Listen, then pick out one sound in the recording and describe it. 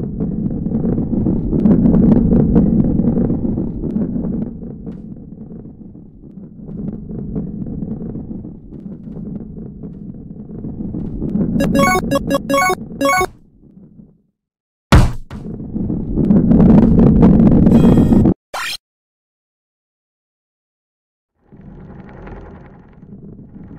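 A heavy ball rolls with a low rumble.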